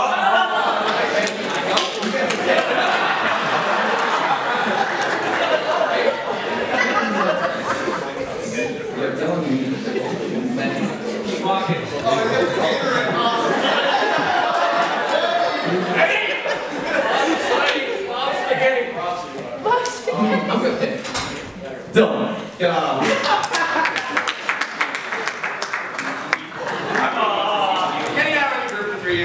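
Young men sing together a cappella in a large hall, with layered voices.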